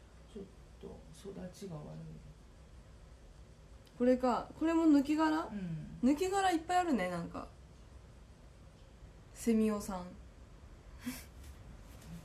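A young woman speaks close by, softly and then with animation.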